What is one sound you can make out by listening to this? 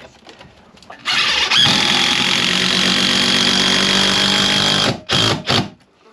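Wood creaks and scrapes as a man pries at a beam.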